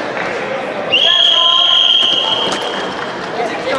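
A referee's whistle blows a long blast.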